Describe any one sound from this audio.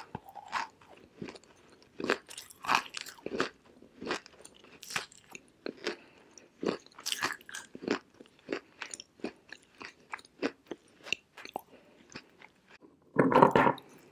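A young woman makes soft mouth sounds and whispers close to a microphone.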